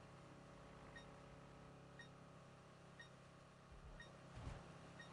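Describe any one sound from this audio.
A short high beep sounds once a second as a countdown nears its end.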